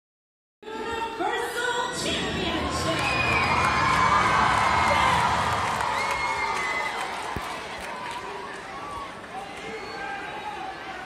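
A large crowd cheers and screams loudly in a big echoing arena.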